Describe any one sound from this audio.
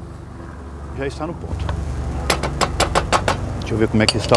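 A wooden spoon scrapes and taps in a frying pan.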